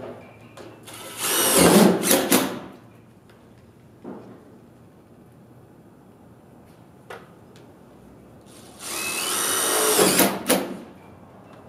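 A power tool whirs loudly in short bursts close by.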